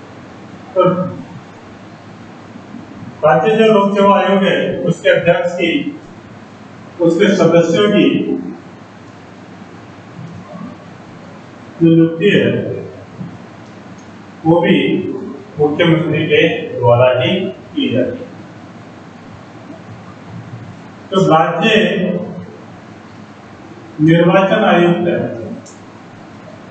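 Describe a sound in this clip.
A man speaks calmly and clearly nearby, in short bursts with pauses.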